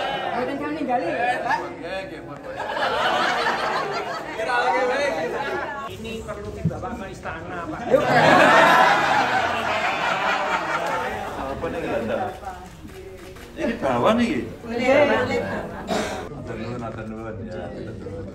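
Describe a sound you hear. An older man speaks cheerfully.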